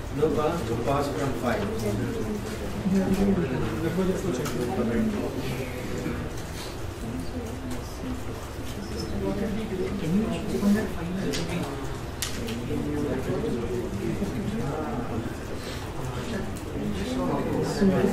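A man lectures steadily through a microphone.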